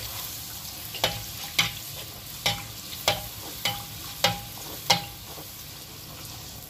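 Hot oil sizzles and bubbles steadily in a pan.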